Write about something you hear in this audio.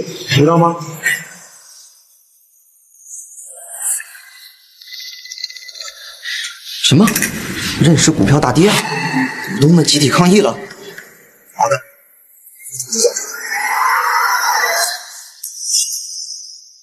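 A young woman speaks close by in an upset, pleading voice.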